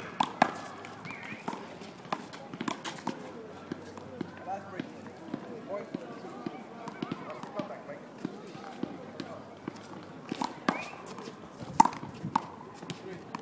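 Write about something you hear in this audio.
A rubber ball bounces on hard pavement.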